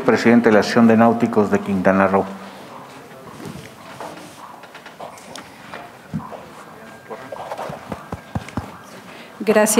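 A man speaks clearly through a microphone in a large room.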